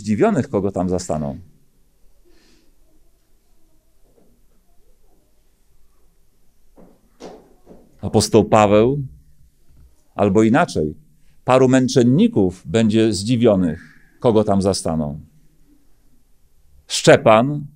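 A middle-aged man speaks calmly into a microphone, with pauses.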